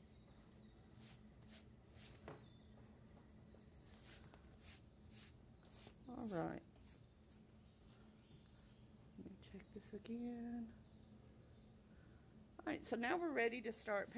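A hand brushes across paper.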